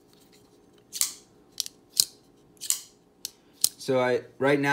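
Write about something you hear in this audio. A folding knife's blade snaps open and shut with sharp clicks.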